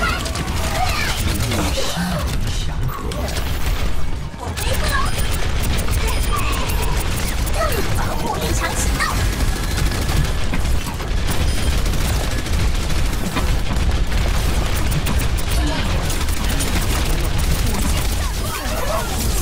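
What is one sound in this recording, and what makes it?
Explosions burst with loud booms.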